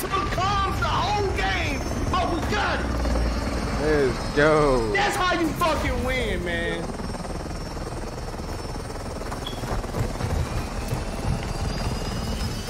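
A helicopter rotor thrums steadily nearby.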